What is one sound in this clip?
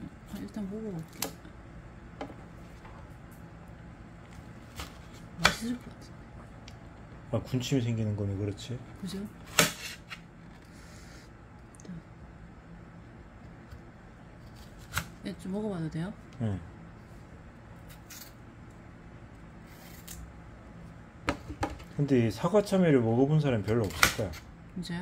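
A knife slices through firm melon with soft crunches and taps.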